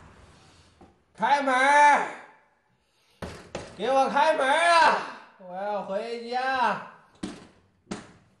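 A man calls out loudly and pleadingly through a door.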